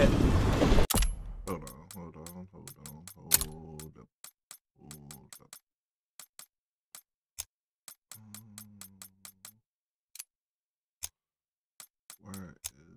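Menu clicks tick quickly.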